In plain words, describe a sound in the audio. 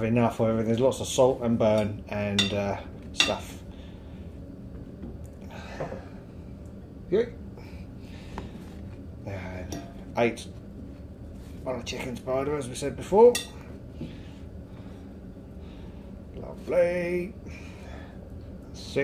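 Hands rub and pat food in a bowl of dry flour with soft rustling.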